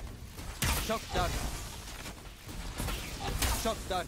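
A bow string draws and releases an arrow with an electric whoosh.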